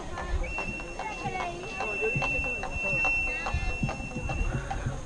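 A drum beats a quick rhythm.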